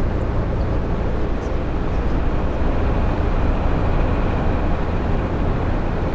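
A tanker truck rushes past close by.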